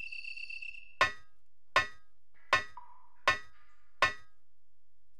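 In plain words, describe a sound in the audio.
Hands and feet knock on metal ladder rungs in a slow, even rhythm.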